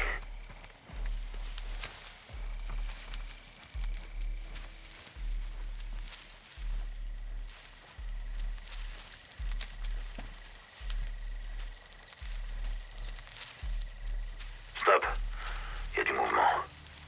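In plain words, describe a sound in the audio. Soft thuds of a body moving along the ground repeat at a steady pace.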